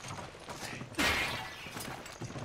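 A clay pot shatters with a crash.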